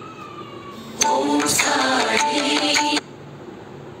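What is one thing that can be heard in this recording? A phone ringtone plays loudly.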